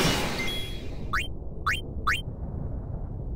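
Short menu beeps chirp in quick succession.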